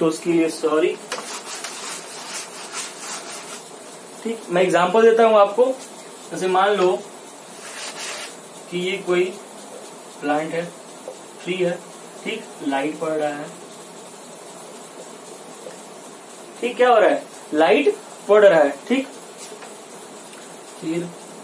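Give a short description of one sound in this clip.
A young man speaks calmly, explaining, close by.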